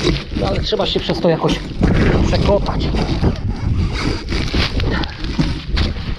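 A hand pushes and scrapes through loose soil.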